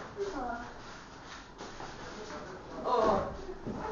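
A body thuds onto the floor.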